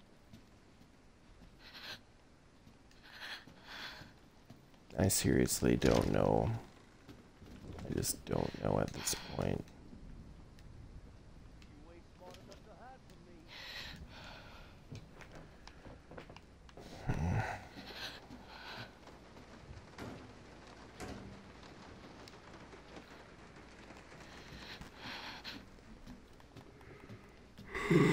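A lighter flame hisses softly.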